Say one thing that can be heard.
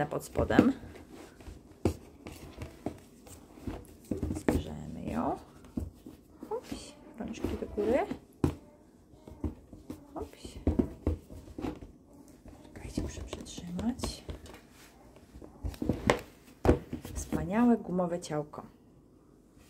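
A plastic doll rustles and taps against a cardboard box.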